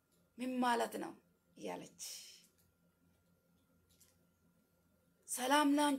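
A young woman speaks calmly through an online call.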